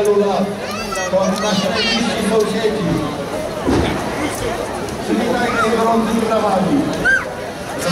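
Children in a passing group call out and talk.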